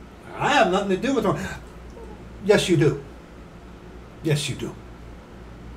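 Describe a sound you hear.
A middle-aged man speaks calmly and close to the microphone, in short bursts.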